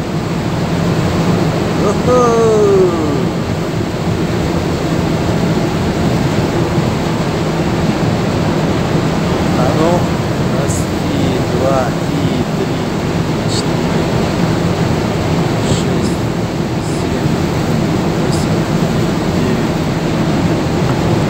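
Wind blows steadily across an open ship's deck.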